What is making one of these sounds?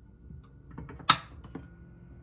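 A pan knocks down onto a stovetop.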